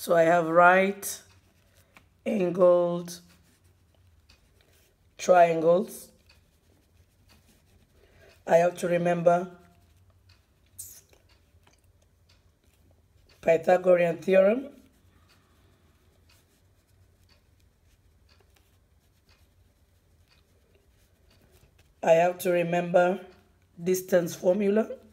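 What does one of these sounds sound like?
A pen scratches softly across paper.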